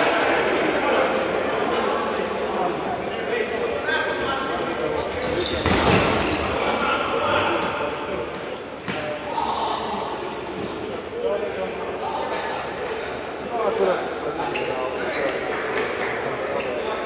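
Men shout to each other across an indoor court.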